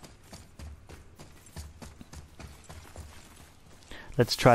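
Heavy footsteps crunch on stony ground.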